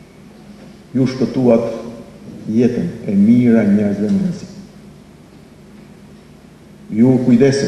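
A middle-aged man speaks formally into a microphone, with pauses between phrases.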